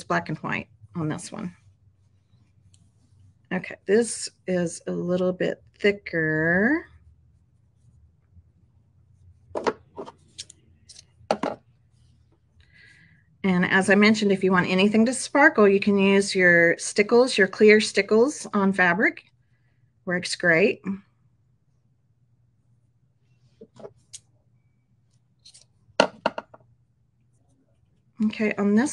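A middle-aged woman talks calmly and close to a microphone, in bursts with pauses.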